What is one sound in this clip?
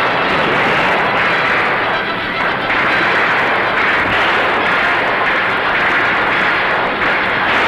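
Rifles fire in a rapid volley.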